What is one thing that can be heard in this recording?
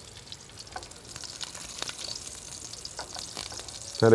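A spatula scrapes against a frying pan.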